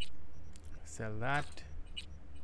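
A man makes a short voiced sound close to a microphone.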